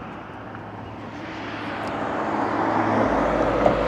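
A car drives past on a road nearby.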